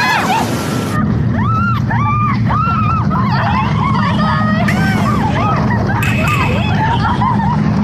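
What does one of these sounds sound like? A roller coaster rumbles along its track.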